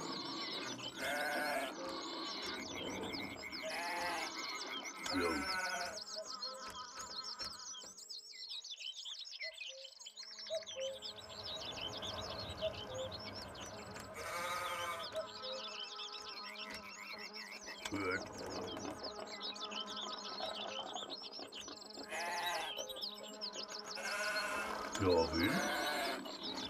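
Sheep bleat now and then.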